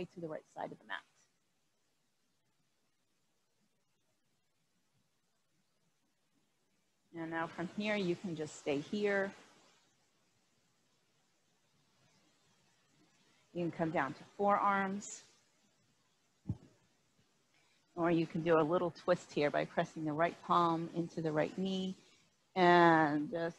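A woman speaks calmly in short bursts, heard through a microphone.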